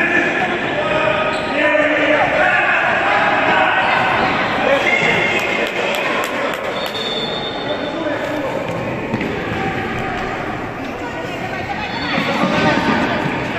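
A ball thumps against the floor and is kicked.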